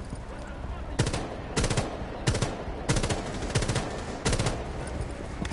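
A rifle fires several sharp shots in quick bursts.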